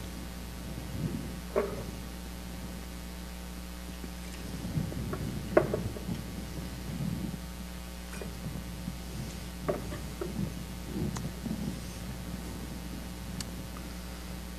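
Small objects knock and clink now and then in a quiet echoing room.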